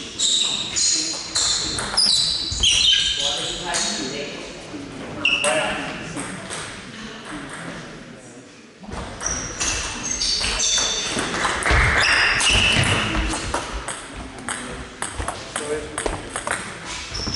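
Table tennis balls click back and forth on a table and paddles in a large echoing hall.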